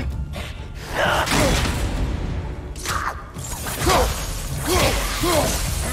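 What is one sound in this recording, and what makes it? Blows and clashes ring out in a fight.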